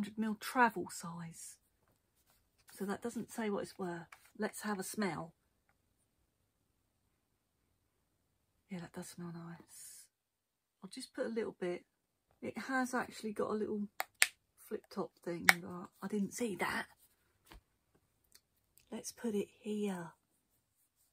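A woman speaks softly and closely into a microphone.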